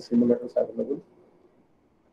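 A man speaks briefly through an online call.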